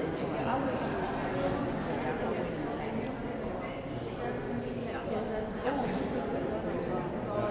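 Several adults chat among themselves in a large echoing hall.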